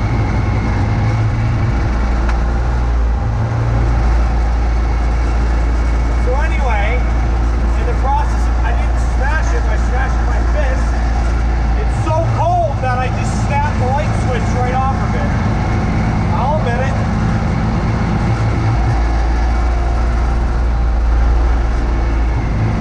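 A snowblower engine roars steadily close by.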